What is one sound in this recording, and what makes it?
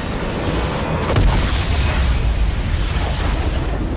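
A large structure explodes with a deep boom.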